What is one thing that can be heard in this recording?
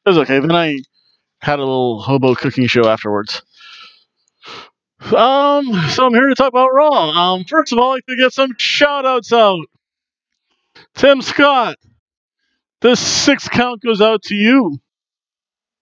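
A middle-aged man talks with animation into a headset microphone, close up.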